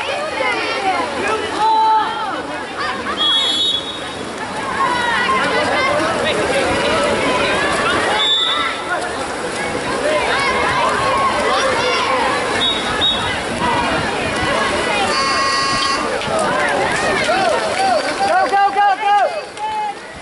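A crowd of spectators shouts and cheers nearby.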